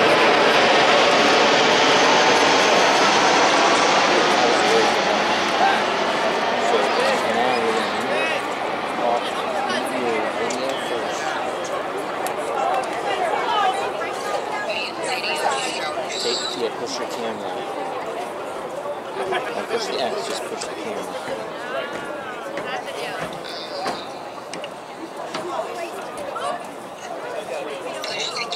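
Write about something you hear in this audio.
A crowd of spectators chatters and cheers outdoors, loudest at first and slowly quieting.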